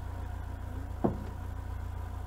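A hand knocks once on a wooden beam.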